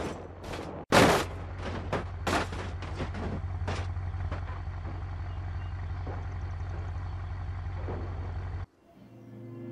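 A damaged car engine idles with a steady low hum.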